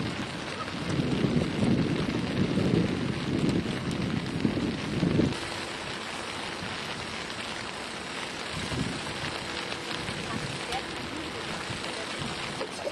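Bicycle wheels roll and tick along.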